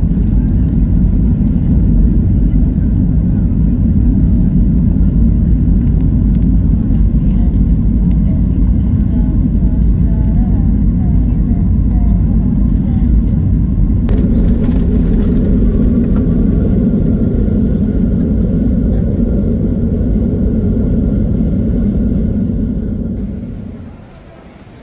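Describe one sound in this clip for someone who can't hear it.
A jet plane's engines roar steadily, heard from inside the cabin.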